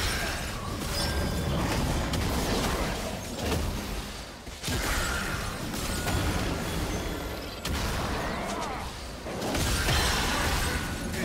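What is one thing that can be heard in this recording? Video game spell effects whoosh and crackle during a battle.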